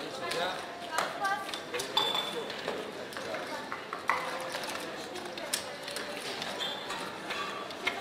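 Casino chips click and clatter.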